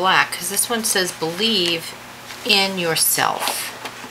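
A sheet of paper rustles as it is laid down.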